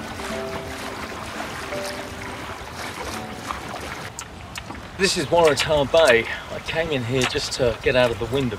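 Water laps against a small boat's hull.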